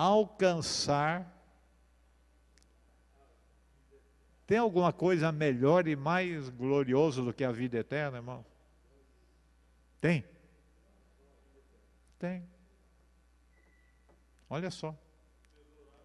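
An elderly man speaks calmly into a microphone, with pauses, heard through a loudspeaker.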